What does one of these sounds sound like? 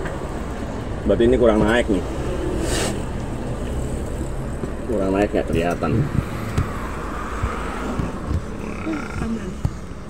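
A middle-aged man speaks calmly close by, in short bursts.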